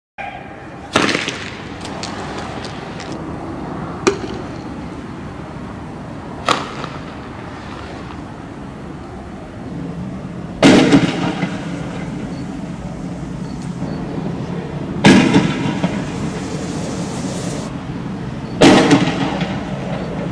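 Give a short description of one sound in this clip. Loud explosive bangs go off one after another outdoors, each echoing briefly.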